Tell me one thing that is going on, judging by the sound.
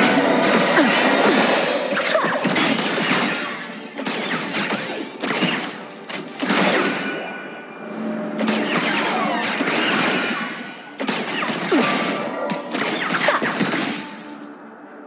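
Magical blasts and spell effects whoosh and crackle in quick bursts.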